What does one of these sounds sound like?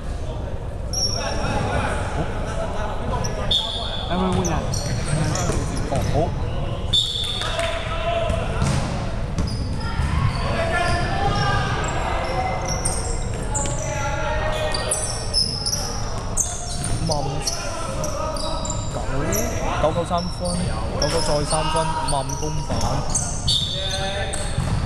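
Young men call out to each other during play.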